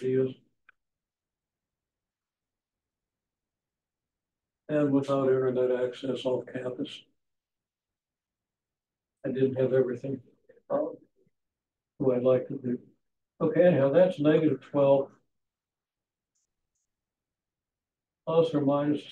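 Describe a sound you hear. An elderly man speaks calmly, in bursts with pauses.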